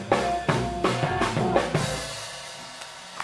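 A jazz trio of electric guitar, double bass and drums plays and ends a tune.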